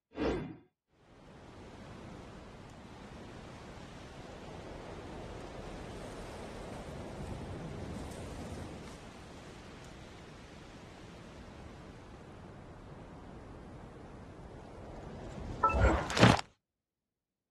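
Wind blows steadily outdoors.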